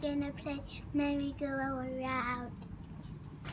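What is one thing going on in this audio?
A young girl speaks calmly and close by.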